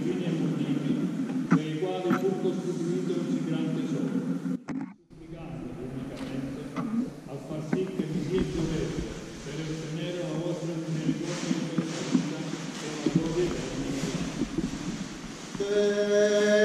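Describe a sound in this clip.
A group of women and men recite prayers together in a low murmur, echoing in a large hall.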